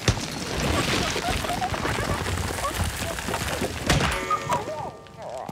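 Stone crumbles and rumbles loudly as rocks fall.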